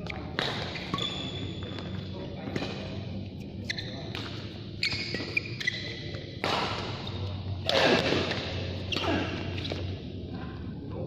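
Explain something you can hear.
Sneakers squeak on a court floor.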